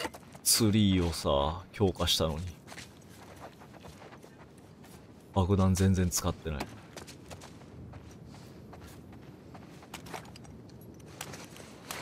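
Footsteps crunch softly on scattered debris.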